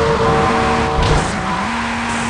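A car crashes with a loud thud.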